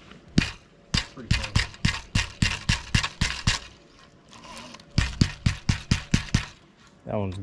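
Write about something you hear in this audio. A fishing reel clicks rapidly as its handle is cranked.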